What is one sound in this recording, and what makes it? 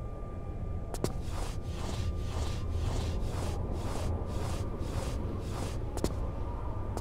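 Hands and knees shuffle rhythmically while crawling.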